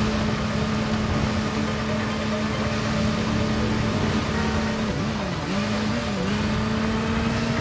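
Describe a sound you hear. Tyres hiss on wet pavement.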